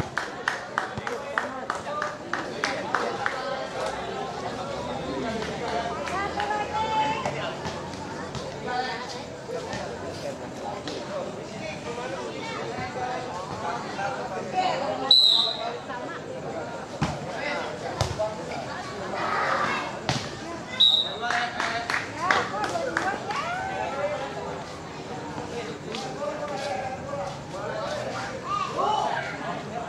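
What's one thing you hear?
Young men shout and chatter outdoors.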